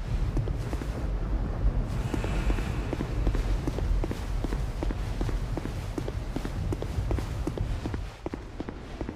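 Heavy armored footsteps run quickly across stone.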